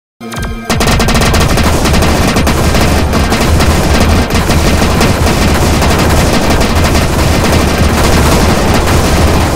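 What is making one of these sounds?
Explosions pop in quick succession.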